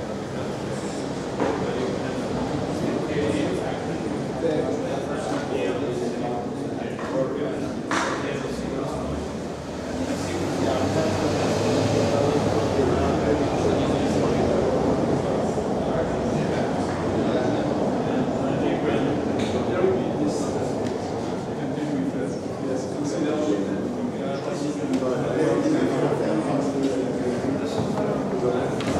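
Several men talk at once in an echoing room.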